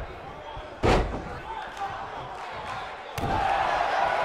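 A heavy thud lands on a wrestling ring mat.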